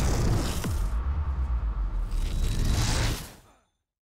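An explosion booms and rumbles.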